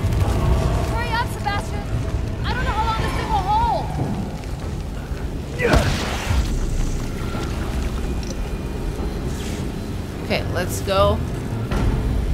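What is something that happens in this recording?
A young woman talks close to a microphone.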